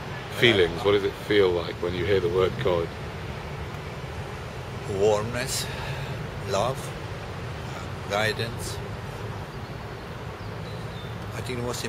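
An elderly man speaks calmly close by, with pauses.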